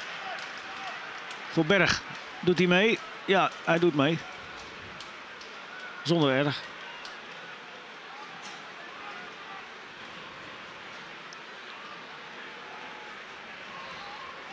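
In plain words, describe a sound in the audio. A large stadium crowd murmurs steadily outdoors.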